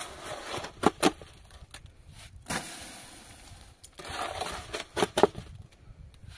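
A metal shovel scrapes and knocks inside a basin of mortar.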